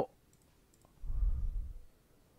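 A heavy book thuds open with a low rumble.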